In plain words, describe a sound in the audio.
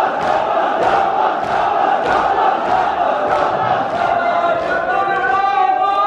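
Many hands beat on chests in a steady rhythm.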